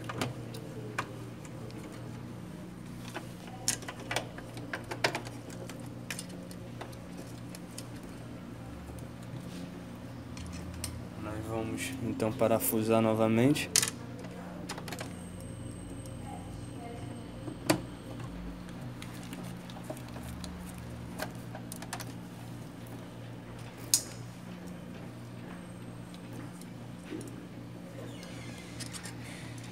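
Plastic parts click and rattle as hands handle them.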